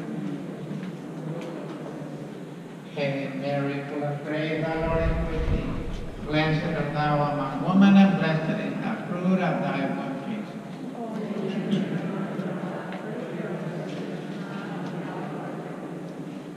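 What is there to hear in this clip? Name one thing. A crowd of people murmurs softly in a large echoing hall.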